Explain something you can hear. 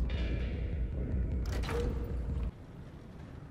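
A low machine hum drones steadily, then cuts off abruptly.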